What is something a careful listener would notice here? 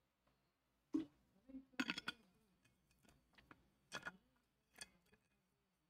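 A bottle cap clicks shut.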